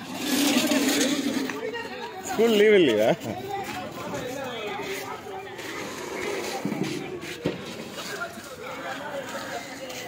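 A crowd of men and women chatter and call out in an outdoor market.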